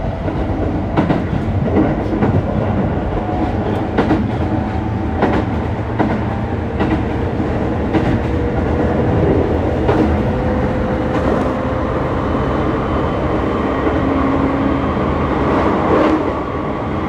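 Wheels click and clatter over rail joints.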